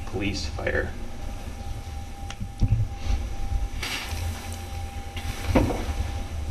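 A man speaks at a distance in a large room.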